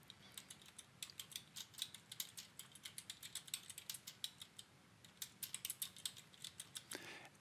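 A keyboard clicks with quick typing.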